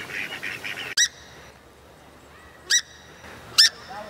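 A swamphen gives sharp, short calls.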